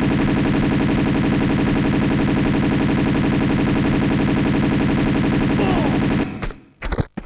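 Guns fire in a rapid, steady burst.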